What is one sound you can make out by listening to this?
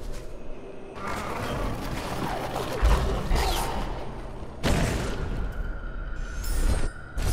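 A glowing spirit attacks with sharp magical whooshes and bursts.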